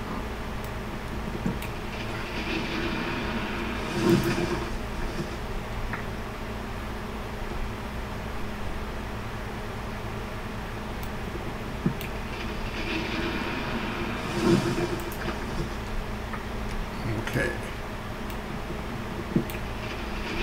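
Blocks crunch and break in a quick series of blows.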